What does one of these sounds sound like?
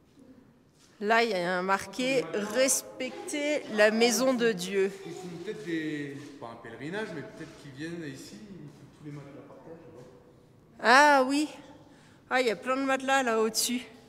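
A man speaks with animation close by, in a large echoing room.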